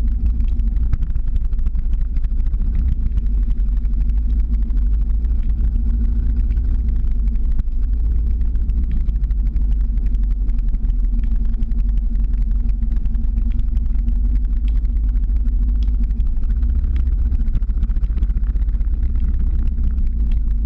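Skateboard wheels roll and rumble steadily on asphalt.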